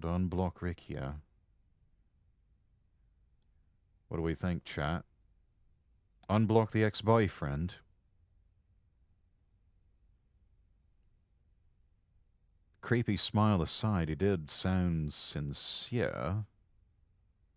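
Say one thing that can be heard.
A young man speaks calmly into a microphone in short bursts.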